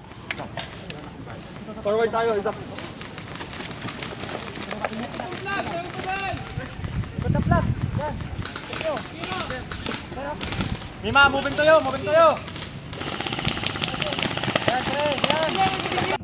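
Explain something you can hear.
Rifles fire sharp shots outdoors.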